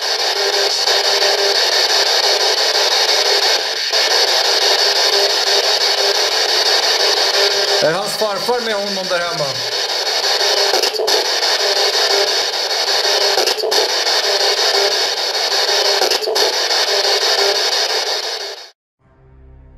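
Loud static hisses steadily from a handheld radio receiver.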